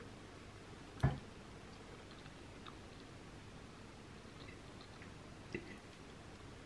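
A fork clinks against a ceramic plate.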